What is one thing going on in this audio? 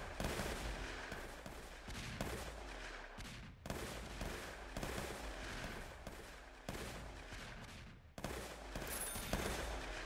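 Rapid game battle sounds of hits and clashes go on throughout.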